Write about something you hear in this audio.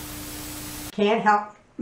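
An older woman speaks with animation close by.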